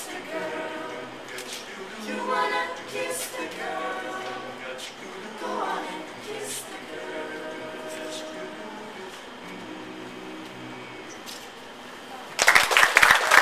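A group of young singers sings together outdoors.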